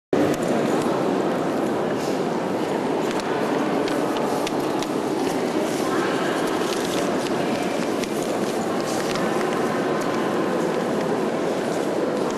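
A crowd of visitors murmurs and chatters in a large echoing hall.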